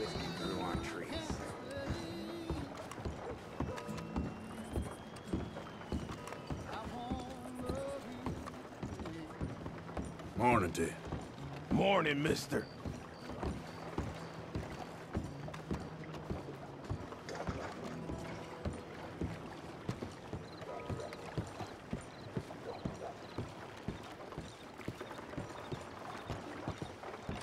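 Boots thud steadily on wooden boards.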